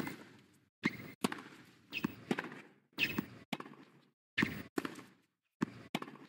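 Tennis balls are struck sharply with rackets, back and forth.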